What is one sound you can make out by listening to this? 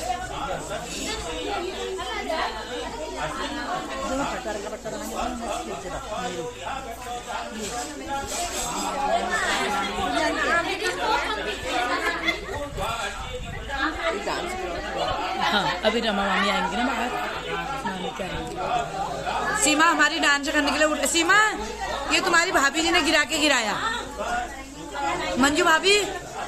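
A middle-aged woman sings loudly up close.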